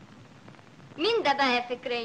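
A young woman sings in a clear, high voice.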